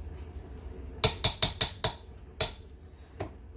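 A spatula scrapes and stirs food in a metal pot.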